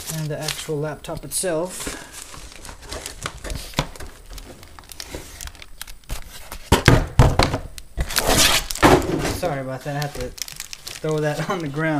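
A thin foam wrapping sheet rustles as hands handle it.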